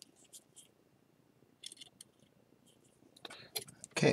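A metal tool scrapes lightly against a ceramic bowl.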